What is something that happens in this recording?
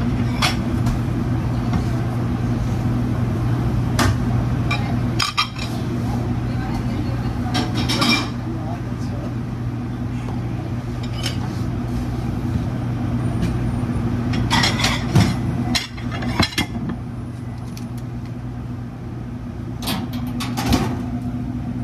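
An exhaust fan hums steadily.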